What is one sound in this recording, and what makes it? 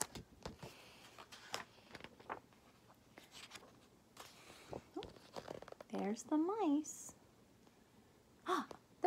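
A young woman speaks close by, reading out with expression.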